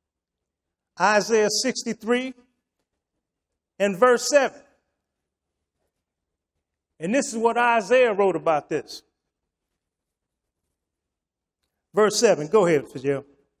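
An elderly man speaks calmly through a microphone, in short phrases with pauses.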